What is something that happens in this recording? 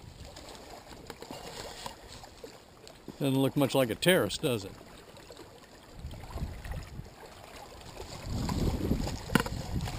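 Small waves lap gently against rocks at the shore.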